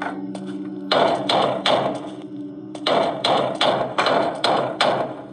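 Heavy footsteps thud steadily on a wooden floor.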